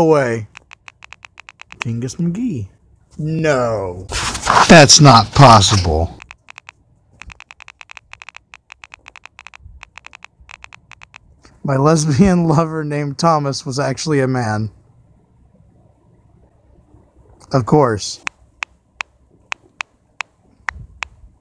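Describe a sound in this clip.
A phone keyboard clicks rapidly with each key tap.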